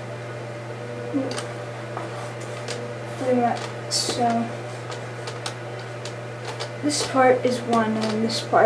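A child talks nearby.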